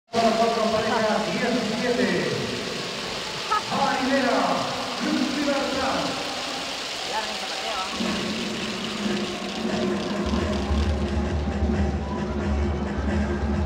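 Music plays through loudspeakers in a large echoing arena.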